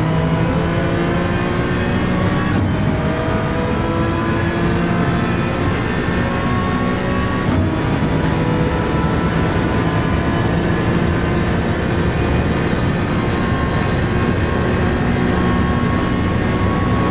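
A race car engine roars loudly, climbing in pitch as it speeds up.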